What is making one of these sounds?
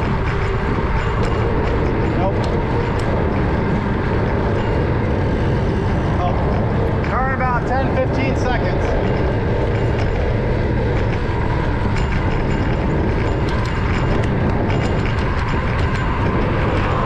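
Tyres hum steadily on a paved road as a car drives along.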